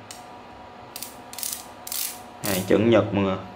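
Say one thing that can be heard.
A ratchet wrench clicks as it is turned.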